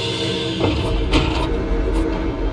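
A metal lever clunks as it is pulled down.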